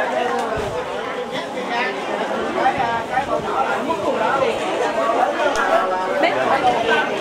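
A crowd of men and women chatter close by, outdoors.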